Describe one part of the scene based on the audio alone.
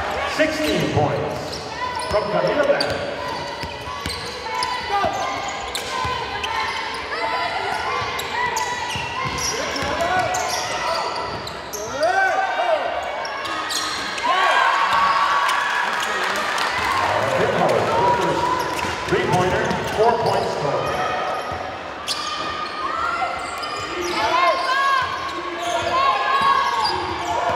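Basketball shoes squeak sharply on a hard floor in an echoing hall.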